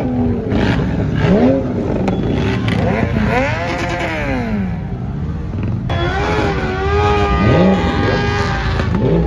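Motorcycle engines rumble and rev nearby.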